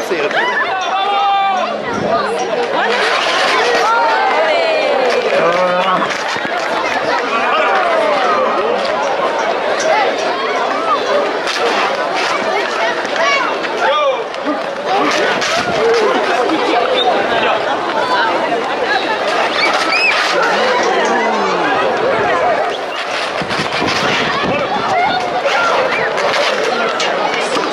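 A large crowd of spectators shouts, whistles and cheers nearby, outdoors.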